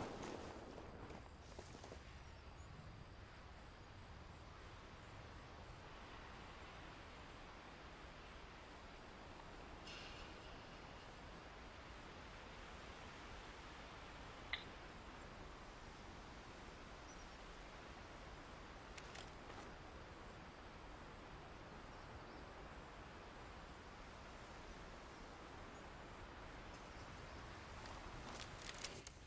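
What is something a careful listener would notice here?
Leaves rustle as someone creeps through bushes.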